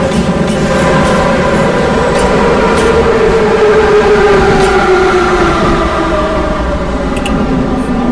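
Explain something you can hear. An underground train's motor whine slides lower in pitch as the train slows.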